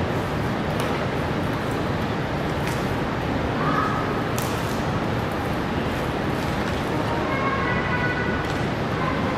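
A panda crunches and chews bamboo leaves.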